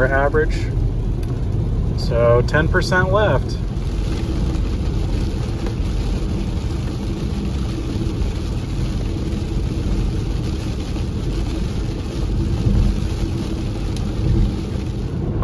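Tyres rumble and hiss steadily on a wet road from inside a moving car.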